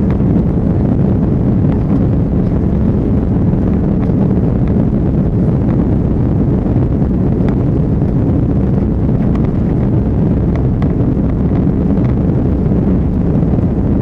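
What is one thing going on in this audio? Jet engines roar steadily with a deep rumble from inside an airliner cabin.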